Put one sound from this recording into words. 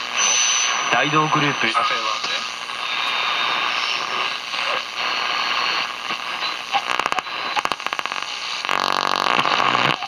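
A radio hisses with static and snatches of stations as it is tuned across the dial.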